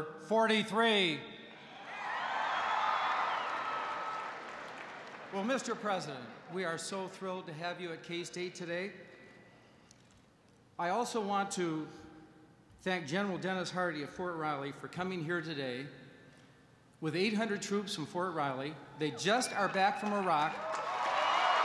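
A middle-aged man speaks calmly into a microphone, with an echo in a large hall.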